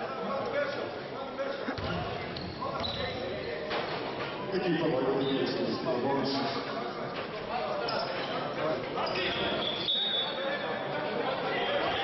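Men call out and chatter in an echoing hall.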